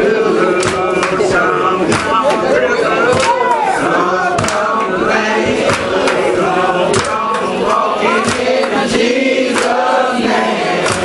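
A man sings with fervour through a microphone.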